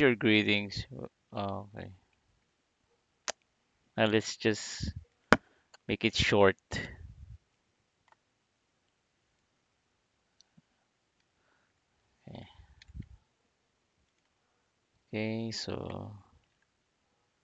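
A man speaks calmly into a nearby microphone, in short bursts with pauses.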